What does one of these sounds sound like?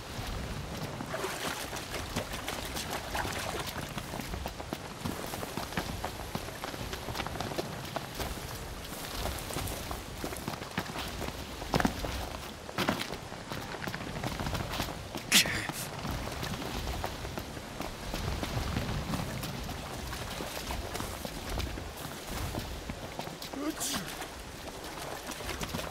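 Footsteps splash through shallow water.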